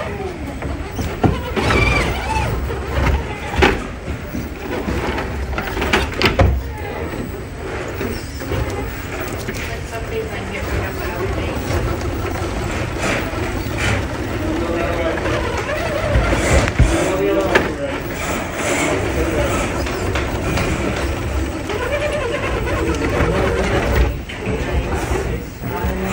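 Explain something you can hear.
Plastic tyres scrape and knock against rock.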